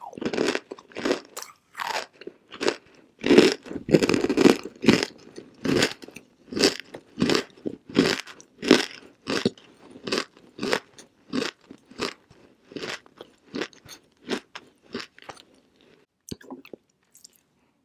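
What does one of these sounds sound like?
A young woman chews loudly and crunchily close to a microphone.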